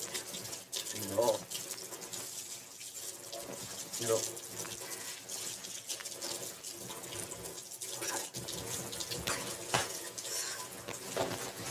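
A man speaks softly and closely.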